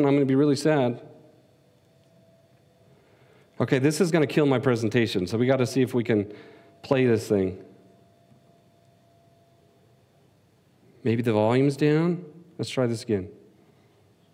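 A man speaks through a microphone in short bursts with pauses.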